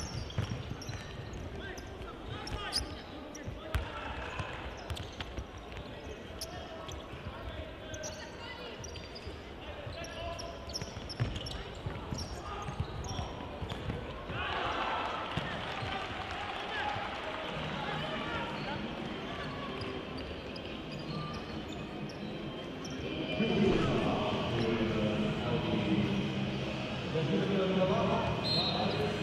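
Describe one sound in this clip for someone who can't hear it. Shoes squeak sharply on an indoor court floor.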